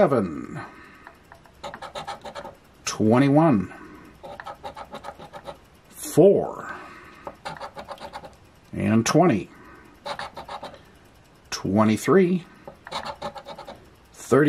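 A coin scratches rapidly across a card.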